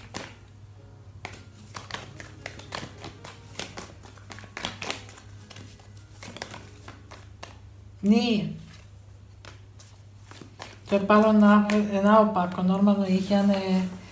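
Playing cards flick and riffle as they are shuffled by hand.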